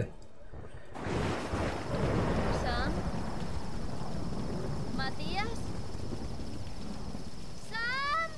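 A fire crackles steadily.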